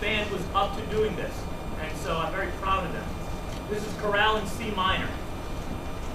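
A man speaks into a microphone, heard through loudspeakers in a large hall.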